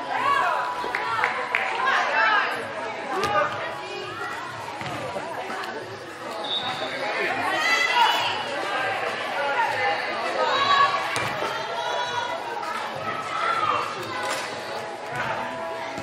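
Young women shout and call to each other in a large echoing hall.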